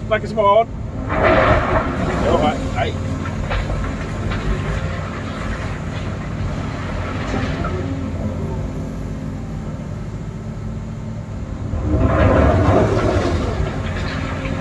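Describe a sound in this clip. Rocks and gravel scrape and clatter in an excavator bucket.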